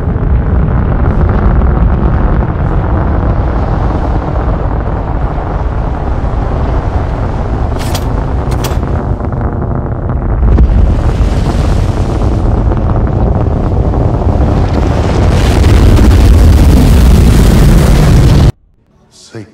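Explosions boom and rumble across open ground.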